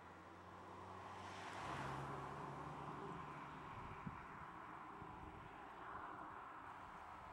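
A car engine hums at low speed.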